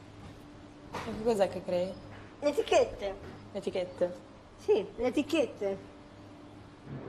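A second young woman speaks with animation.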